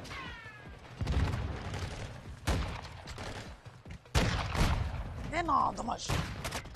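A rifle fires loud, booming shots with a short echo.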